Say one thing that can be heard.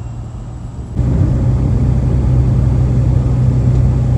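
The piston engine of a single-engine light aircraft grows louder as power is added.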